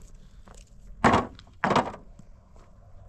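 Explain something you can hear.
Stones clatter loudly into a metal wheelbarrow.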